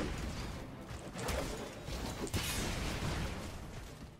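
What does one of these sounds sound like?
Debris clatters and scatters across the ground.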